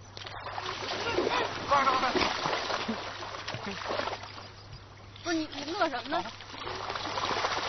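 Water splashes as a dog and a man wade through a river.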